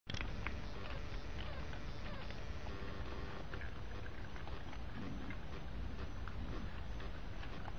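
Raccoons chitter and squeal softly.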